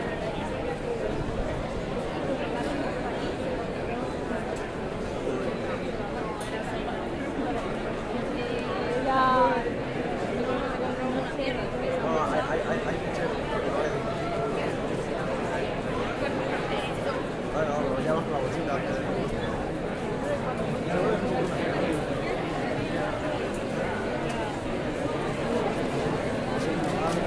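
A large crowd of young people chatters all around outdoors.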